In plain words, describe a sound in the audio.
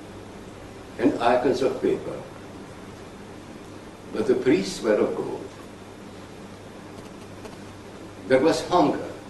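An elderly man speaks slowly and calmly in short phrases with long pauses.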